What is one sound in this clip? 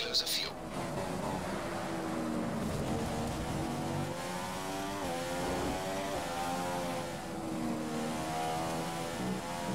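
A racing car engine whines at high revs, rising and falling as the car shifts gears.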